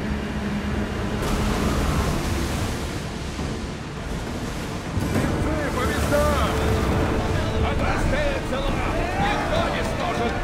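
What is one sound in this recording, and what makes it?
Wind blows steadily over open sea.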